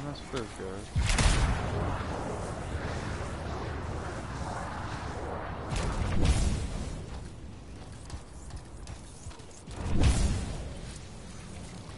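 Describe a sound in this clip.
Jet thrusters roar in loud bursts.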